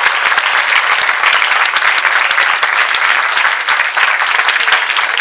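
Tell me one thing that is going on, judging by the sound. A school band plays loudly in a large hall.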